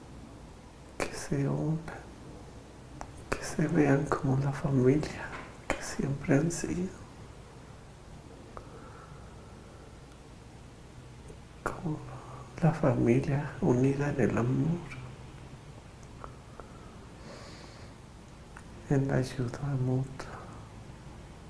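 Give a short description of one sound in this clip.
A man speaks calmly, close by, in short bursts with pauses.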